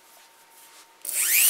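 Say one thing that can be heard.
A rotary tool whirs into a high-pitched spin.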